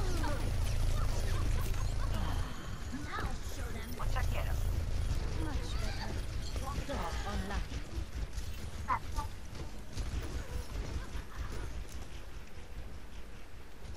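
Rumbling game battle sounds fill the air.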